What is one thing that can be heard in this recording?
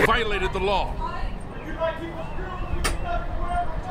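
A metal door swings open.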